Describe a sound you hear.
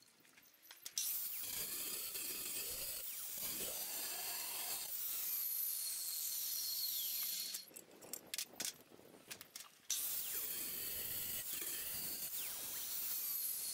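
An angle grinder whines loudly as it cuts through stone.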